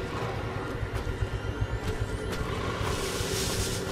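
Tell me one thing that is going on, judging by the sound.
A weapon fires with a sharp whoosh.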